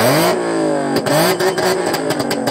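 A car engine revs loudly nearby.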